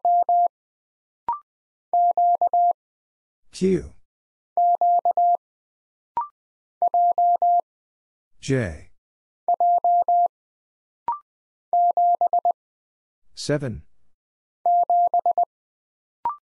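Morse code beeps tap out in short and long steady tones.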